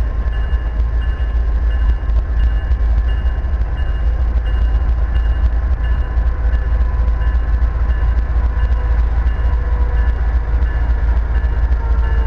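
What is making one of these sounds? A train rumbles as it approaches in the distance.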